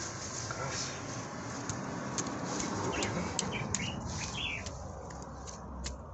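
A small hand tool scrapes and digs into dry soil.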